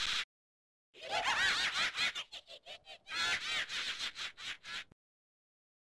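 A high, distorted game creature laughs in bursts.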